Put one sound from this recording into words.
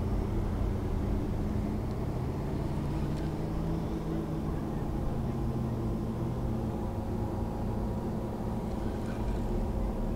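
Wind buffets steadily outdoors.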